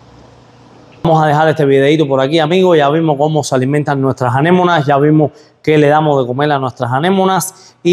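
A man speaks to the listener with animation, close to a microphone.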